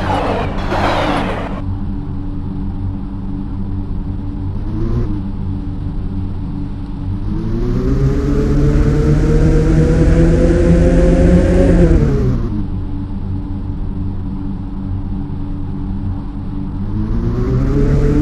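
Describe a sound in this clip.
A car engine hums steadily, revving up and winding down as the car speeds up and slows.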